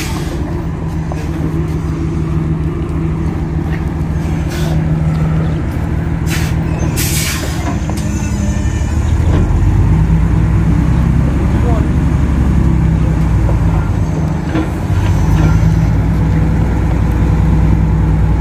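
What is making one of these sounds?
A truck's diesel engine rumbles loudly close by and revs harder as the truck pulls forward.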